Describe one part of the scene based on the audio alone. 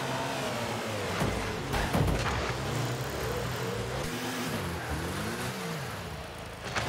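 A game car's engine hums and revs up and down.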